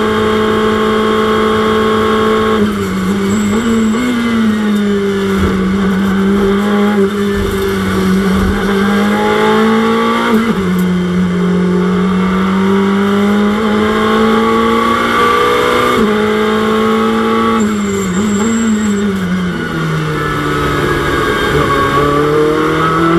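A racing car engine roars loudly, its pitch rising and falling through gear changes.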